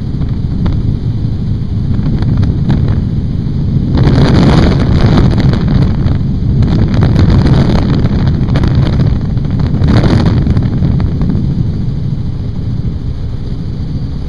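A helicopter engine and rotor drone steadily and loudly close by.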